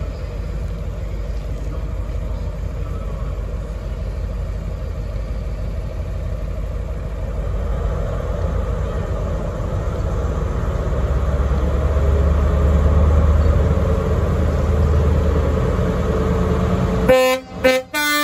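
A diesel train engine rumbles loudly as the train approaches.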